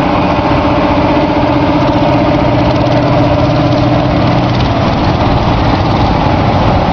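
A large diesel tractor engine rumbles loudly as the tractor rolls slowly past.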